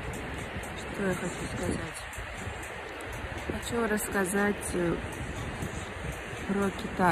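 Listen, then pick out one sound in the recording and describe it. A young woman speaks softly, close to the microphone.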